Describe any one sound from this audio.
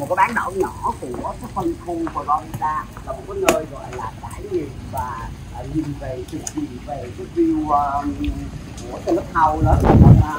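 Children talk with animation close by.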